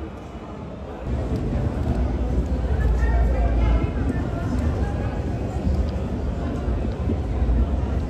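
A suitcase's wheels roll along pavement.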